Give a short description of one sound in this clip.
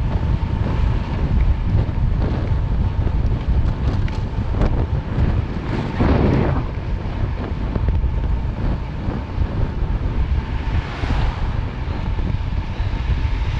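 Wind rushes loudly past a fast-moving bicycle.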